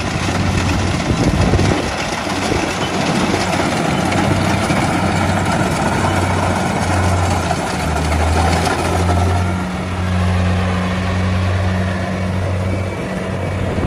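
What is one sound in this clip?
A combine harvester engine drones loudly and steadily close by.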